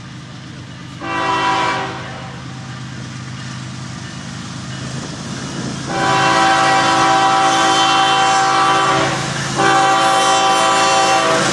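A train horn blows in long blasts, getting closer.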